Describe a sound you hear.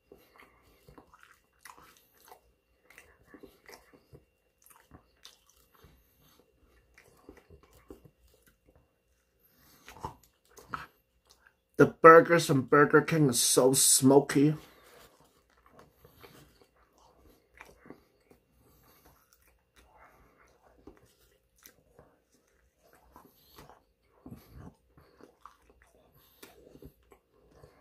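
A young man chews food close to the microphone, with soft wet smacking sounds.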